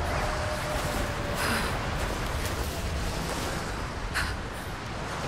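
Wind howls through a snowstorm.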